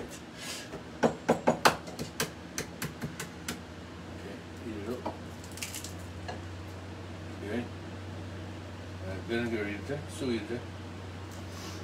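Glass jars and bottles clink as a man handles them.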